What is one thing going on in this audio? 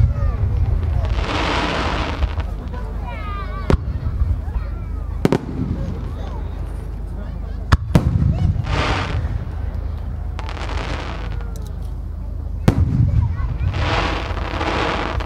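Firework sparks crackle and sizzle after the bursts.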